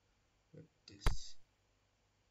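A short electronic click sounds as a menu selection is confirmed.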